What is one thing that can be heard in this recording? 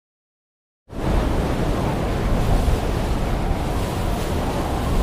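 Wind rushes loudly and steadily past a skydiver in free fall.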